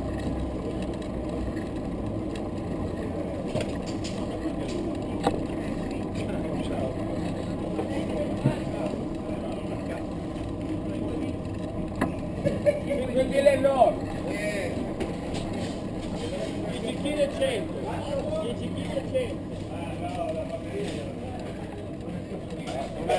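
A steady murmur of distant voices carries outdoors.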